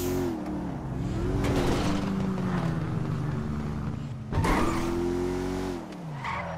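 A car engine revs loudly, its pitch rising and falling.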